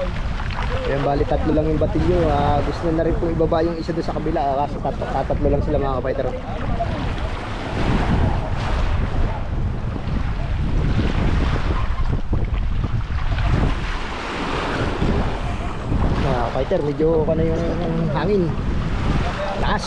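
Water splashes around people wading.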